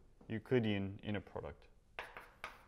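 A man speaks briefly.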